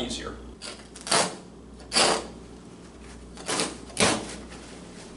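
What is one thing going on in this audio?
A tool scrapes against a wall in short strokes.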